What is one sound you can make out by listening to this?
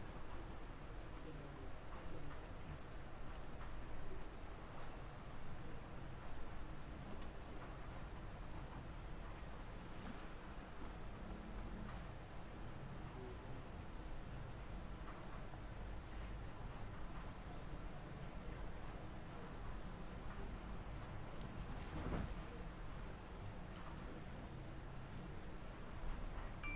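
Calm water laps gently against a small boat.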